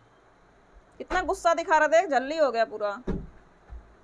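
A woman speaks close by in a high, lively voice.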